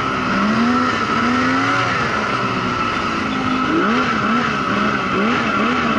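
A snowmobile engine drones loudly up close, its pitch rising and falling as it revs.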